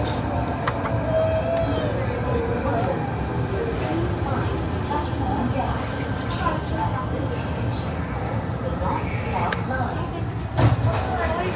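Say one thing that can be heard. A train rumbles steadily along a tunnel.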